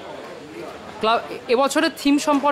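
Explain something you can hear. A second man answers in a loud, animated voice close to a microphone.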